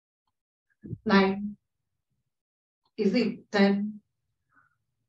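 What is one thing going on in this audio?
A woman gives instructions calmly over an online call.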